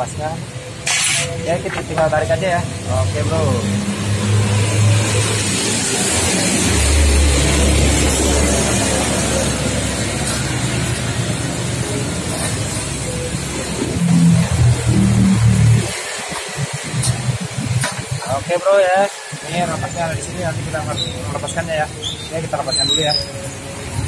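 Metal parts clink and scrape as a fuel pump is worked loose.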